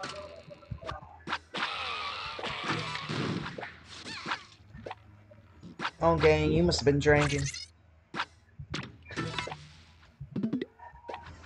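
Cartoonish game sound effects pop, zap and whoosh in quick bursts.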